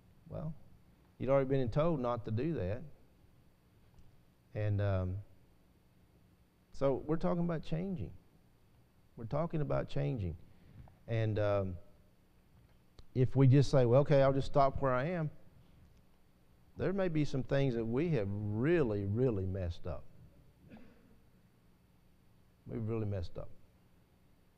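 An older man speaks calmly through a microphone, with pauses between phrases.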